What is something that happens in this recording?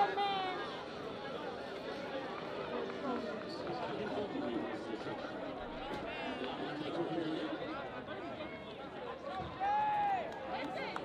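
A crowd of young people chatters outdoors.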